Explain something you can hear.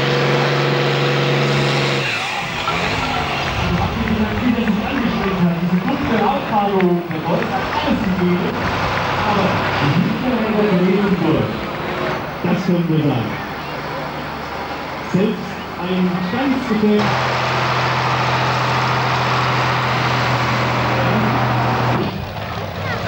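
A tractor engine roars loudly and steadily.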